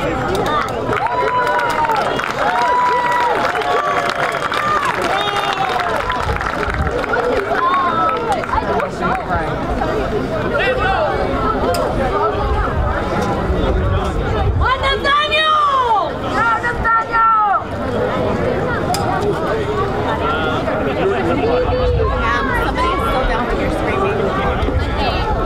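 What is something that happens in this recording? Many voices talk and call out across an open field.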